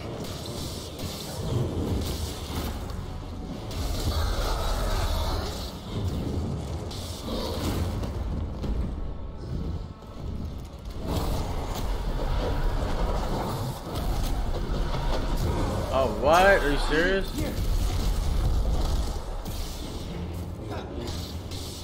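A lightsaber hums and clashes against a creature.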